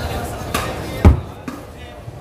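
A heavy wooden block thumps down onto a table.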